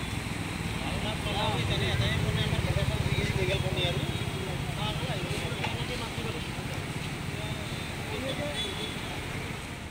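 A crowd of men and women shouts and chatters in the distance.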